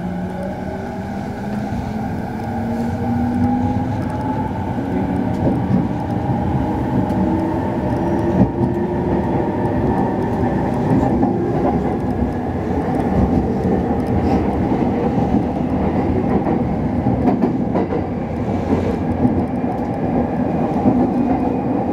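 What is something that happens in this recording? The traction motors of an electric commuter train whine, shifting in pitch as it runs.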